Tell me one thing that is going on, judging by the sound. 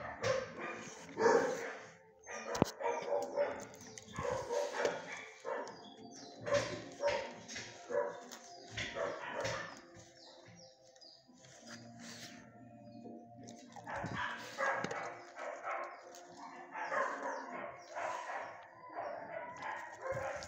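A dog sniffs close by.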